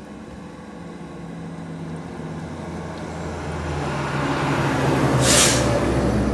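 Water gurgles as it pours from a bottle.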